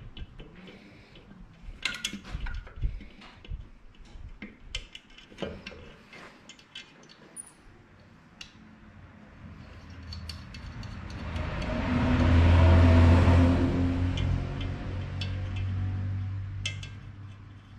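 Metal parts click and clatter.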